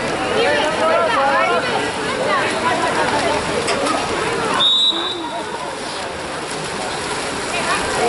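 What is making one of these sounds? Swimmers splash in the water.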